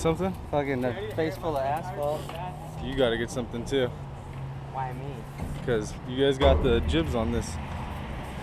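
Another young man talks close by.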